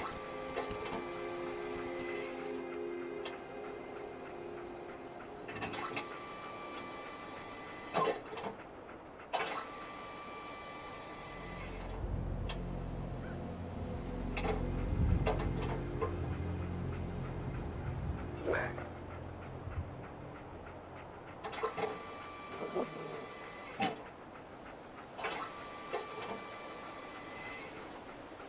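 A small machine whirs and clanks as its mechanical arm moves.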